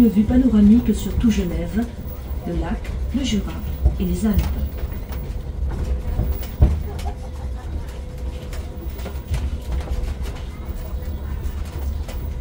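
A small road train rumbles steadily along.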